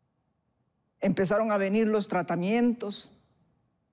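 An elderly woman speaks calmly and clearly into a microphone.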